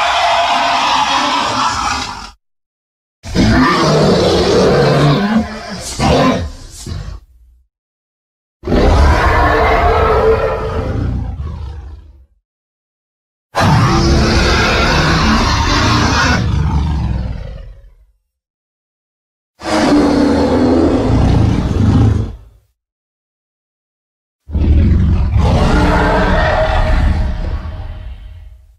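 A huge beast roars loudly in long, deep bursts with short silences between them.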